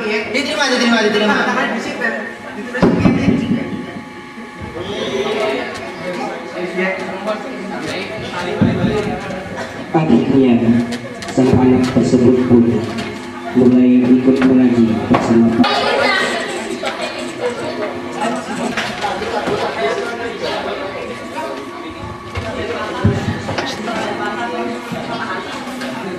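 A man speaks loudly into a microphone, heard through a loudspeaker.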